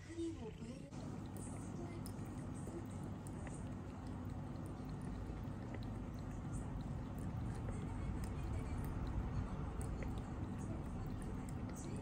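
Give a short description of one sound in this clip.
A cat laps water with quick wet licks.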